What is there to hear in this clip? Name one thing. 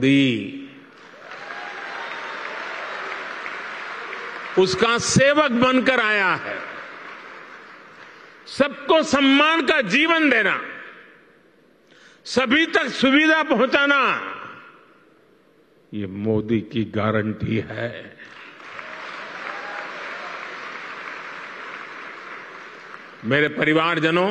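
A large crowd applauds.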